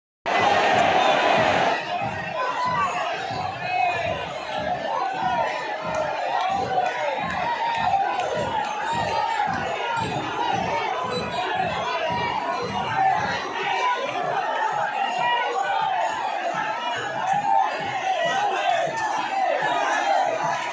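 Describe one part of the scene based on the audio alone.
A large crowd of men and women chant and shout loudly outdoors.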